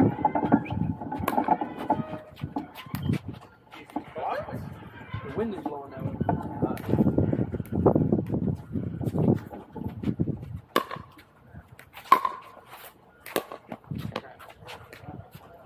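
Paddles pop sharply against a plastic ball.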